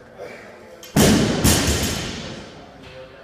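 A heavy barbell crashes down onto a rubber floor with a loud thud.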